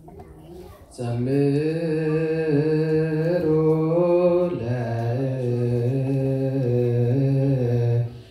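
A group of men chant loudly in unison.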